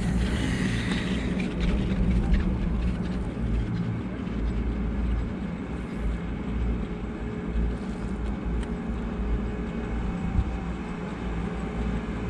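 A fixed-grip chairlift's cable runs overhead with a low hum and rumble.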